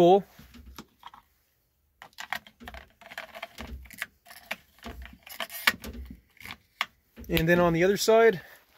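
A hand handles a chainsaw, with plastic parts clicking and knocking.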